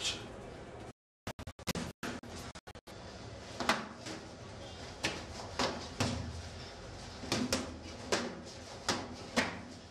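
Boxing gloves thump against bodies and gloves during sparring.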